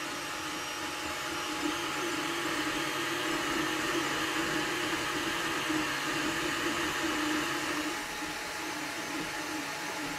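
A cooling fan whirs steadily.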